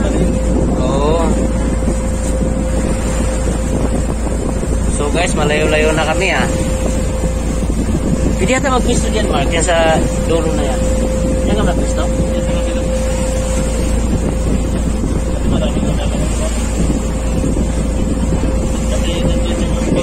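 Wind rumbles across the open water.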